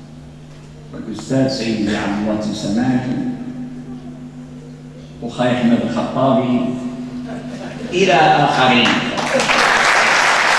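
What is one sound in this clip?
An elderly man speaks forcefully into a microphone, heard through loudspeakers in an echoing hall.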